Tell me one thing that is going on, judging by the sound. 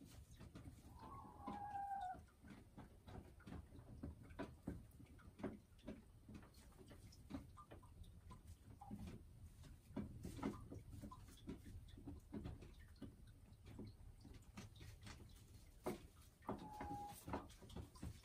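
A hen clucks softly close by.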